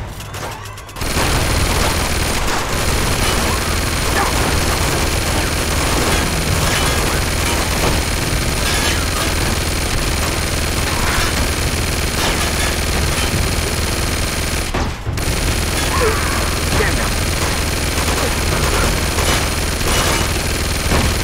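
A mounted machine gun fires in long, rapid bursts.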